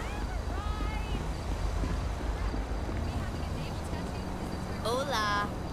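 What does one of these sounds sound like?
Footsteps run quickly over pavement.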